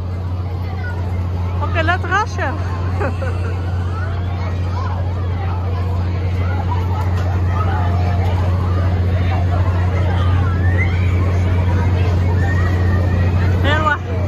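Riders scream and shriek from a swinging ride overhead.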